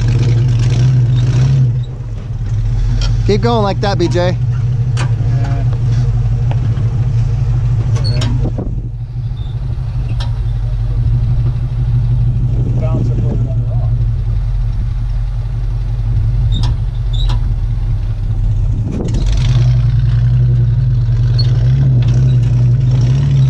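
A truck engine rumbles loudly, revving as it climbs.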